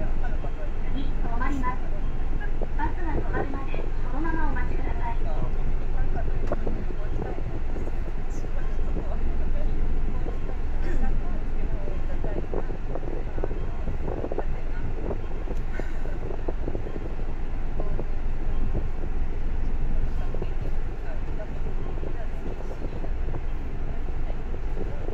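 A bus engine rumbles low and steady from inside the vehicle.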